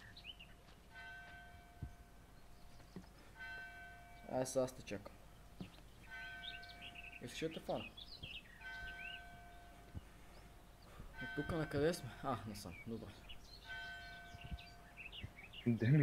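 A short electronic melody of repeated tones chimes.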